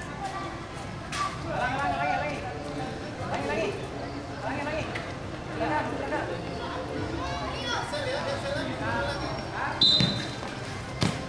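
Young people chatter and call out to one another nearby outdoors.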